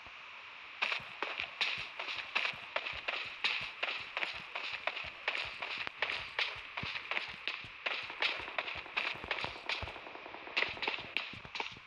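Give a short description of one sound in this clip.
Footsteps thud quickly and evenly on a hard floor.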